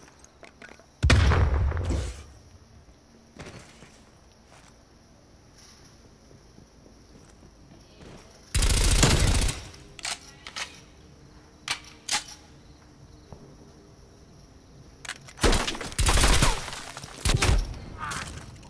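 Gunshots fire in short, loud bursts.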